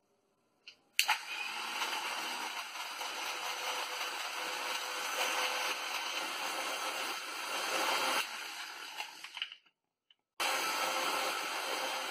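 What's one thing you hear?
An electric blender whirs, blending milk and ice.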